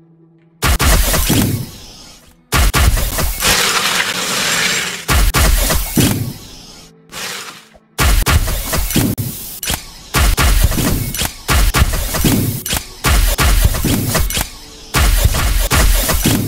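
Bursts of gas hiss and whoosh again and again.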